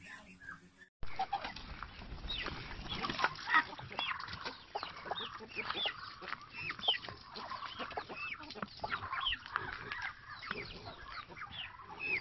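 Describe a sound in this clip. Chickens cluck and chirp close by.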